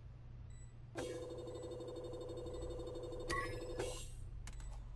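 A small electronic game plays a steady, bright buzzing tone.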